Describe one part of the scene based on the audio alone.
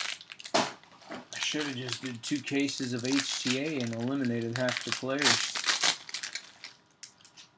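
Plastic wrapping crinkles and rustles as it is torn off.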